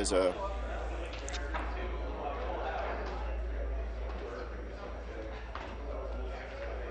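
Many people murmur and chatter in a large echoing hall.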